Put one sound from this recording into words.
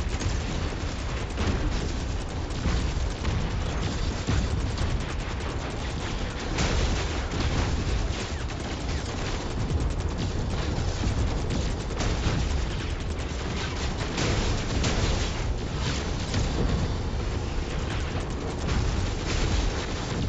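Heavy mechanical footsteps thud steadily.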